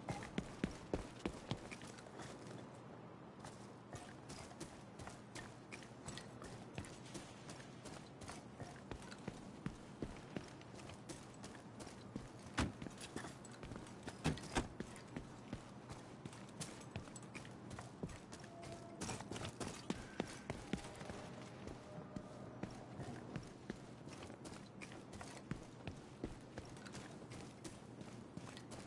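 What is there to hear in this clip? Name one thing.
Footsteps run quickly over a hard street, outdoors.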